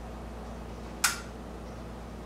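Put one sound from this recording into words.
A car bonnet latch clicks as the bonnet opens.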